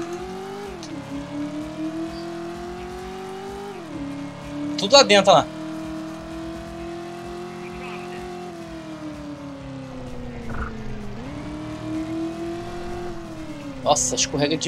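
A car engine drones steadily, rising and falling in pitch as it speeds up and slows down.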